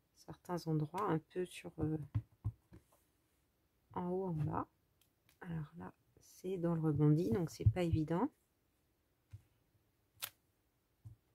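A rubber stamp taps onto paper.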